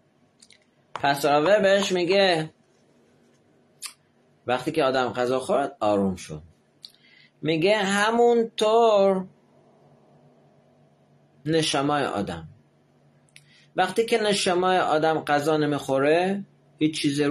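A middle-aged man speaks close to a microphone, with pauses between phrases.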